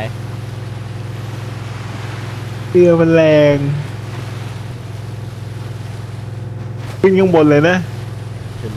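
Water splashes and hisses against a speeding boat's hull.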